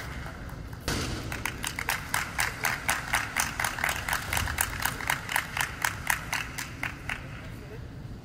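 Spectators clap in a steady rhythm in a large echoing hall.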